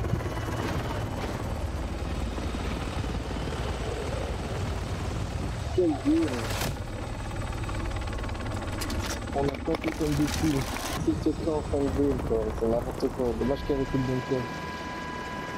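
A helicopter's rotor thuds steadily overhead.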